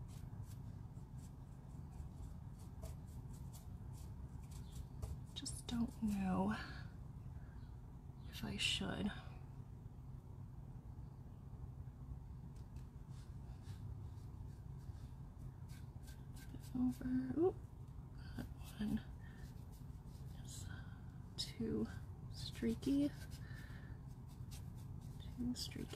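A small brush dabs and scrapes lightly on wood.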